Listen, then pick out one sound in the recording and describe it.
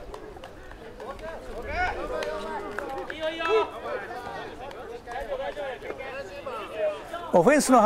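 Young men on a sideline shout and call out to each other outdoors.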